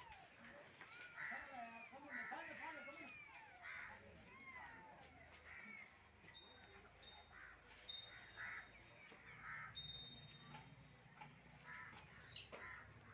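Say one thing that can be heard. A cow munches hay.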